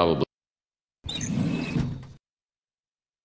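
A wooden drawer slides open.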